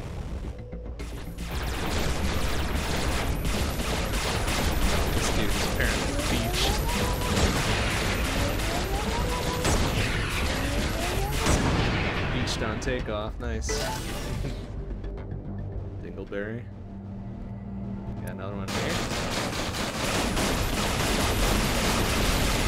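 Spaceship guns fire in rapid bursts.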